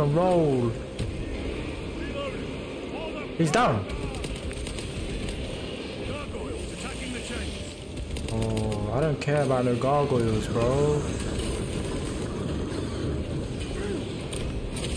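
Gunfire and combat clash in a video game.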